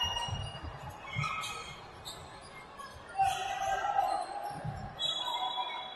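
A basketball bounces on the court with dull thumps.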